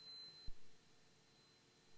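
A control lever clicks once.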